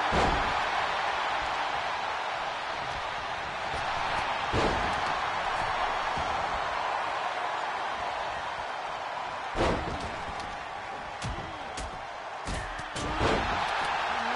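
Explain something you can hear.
Bodies slam heavily onto a wrestling mat.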